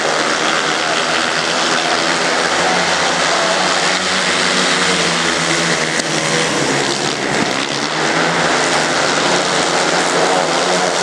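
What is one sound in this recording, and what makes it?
Motorcycle engines roar loudly.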